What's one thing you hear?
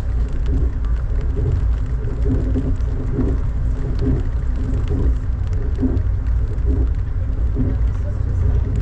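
Train wheels clack rhythmically over rail joints.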